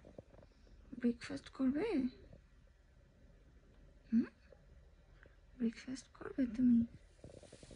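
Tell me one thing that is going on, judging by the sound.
A newborn baby fusses and whimpers softly close by.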